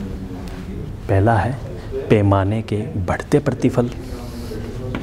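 A man speaks loudly in a lecturing tone through a microphone.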